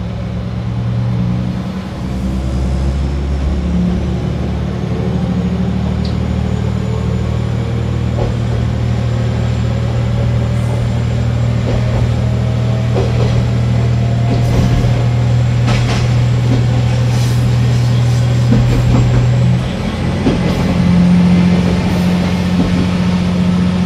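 A train engine hums and drones steadily from inside the cab.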